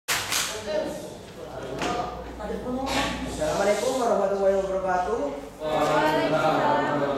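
A young man speaks aloud to a room, slightly echoing.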